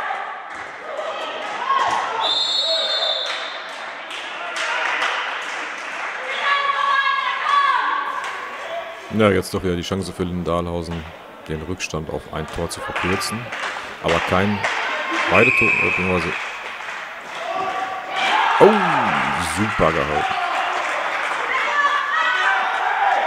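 Young women shout to each other across an echoing hall.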